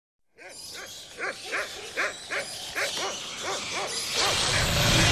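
Bats squeak in quick, repeated chirps.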